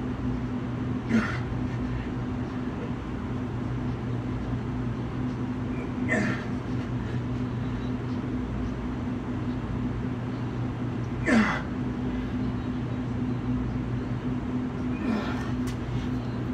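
A man breathes out hard with a short grunt now and then.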